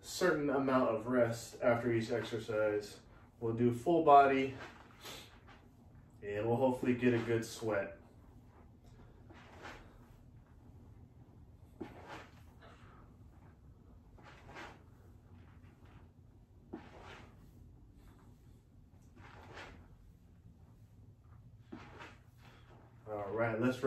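Feet step softly on a rubber mat.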